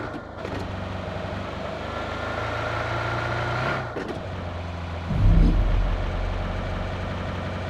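A car engine hums steadily as the car drives over rough ground.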